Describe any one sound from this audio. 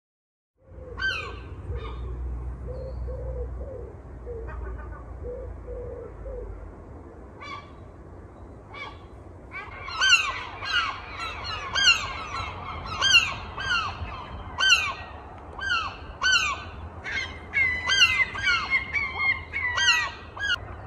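Birds chirp and call outdoors.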